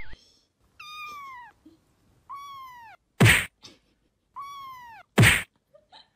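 A kitten mews with high, falling cries.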